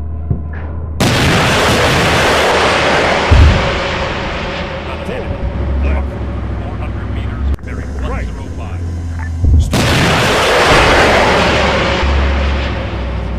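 Rockets launch with a loud roaring whoosh.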